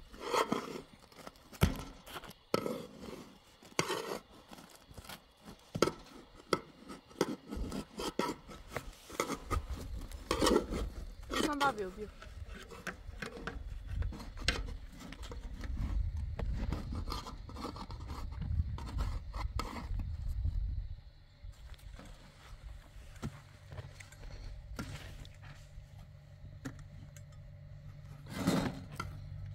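A metal spatula scrapes and taps against a metal tray.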